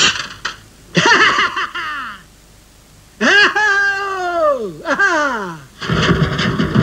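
A man shouts angrily in a cartoonish voice.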